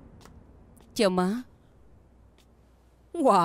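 A young woman calls out a cheerful greeting nearby.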